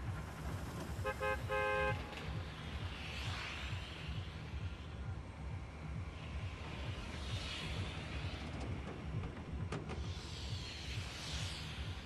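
Wind rushes past in slow swells.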